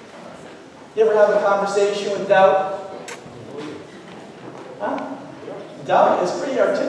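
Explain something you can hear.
A middle-aged man speaks with animation through a microphone in a large echoing room.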